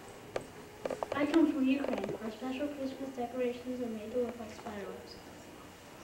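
A young boy speaks into a microphone.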